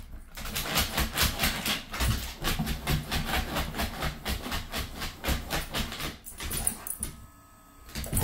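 A dog's claws scrabble and tap quickly on a wooden floor.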